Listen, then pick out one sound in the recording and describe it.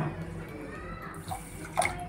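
Water pours into a pan.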